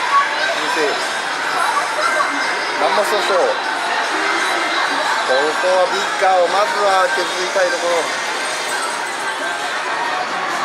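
An arcade game machine plays sounds through a loudspeaker.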